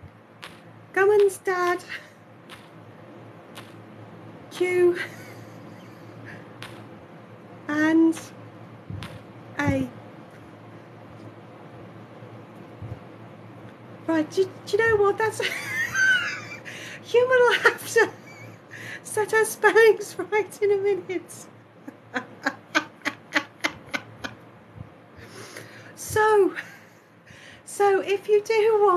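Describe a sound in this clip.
A man speaks in a playful puppet voice close by, in short bursts.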